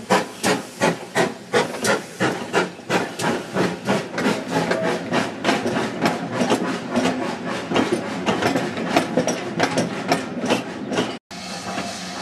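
A steam locomotive chuffs in rapid, rhythmic puffs that speed up as it pulls away.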